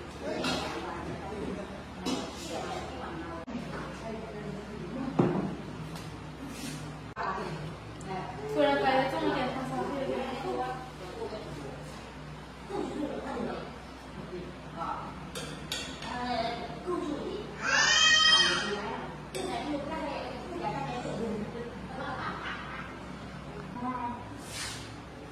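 Women talk casually nearby.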